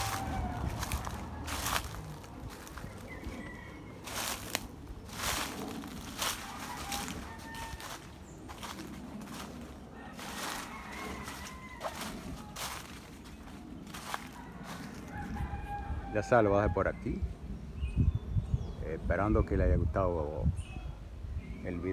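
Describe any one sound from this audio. Wind rustles the leaves of trees outdoors.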